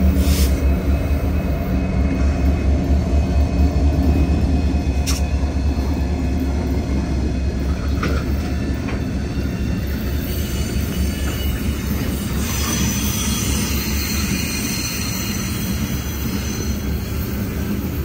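Diesel locomotive engines rumble and throb loudly close by.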